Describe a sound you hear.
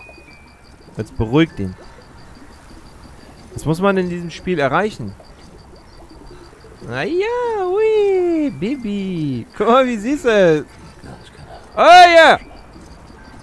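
A baby coos and whimpers close by.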